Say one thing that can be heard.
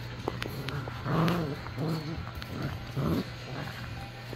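A puppy growls and grunts playfully.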